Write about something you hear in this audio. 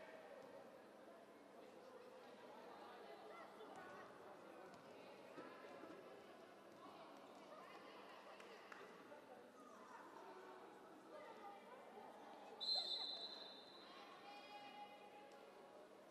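Volleyballs are struck and bounce off the floor.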